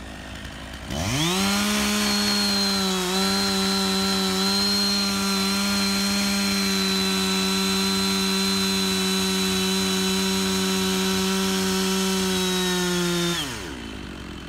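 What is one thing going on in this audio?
A chainsaw starts up and runs at a steady high whine, then stops.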